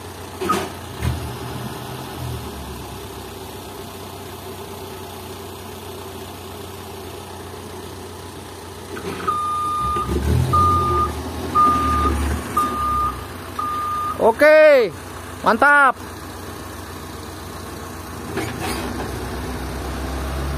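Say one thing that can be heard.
A truck engine idles nearby with a low rumble.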